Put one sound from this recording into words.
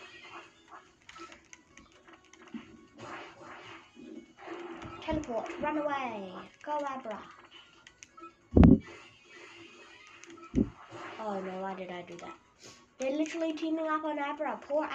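A video game plays bleeping sound effects through television speakers.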